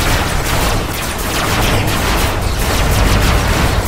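Explosions boom loudly.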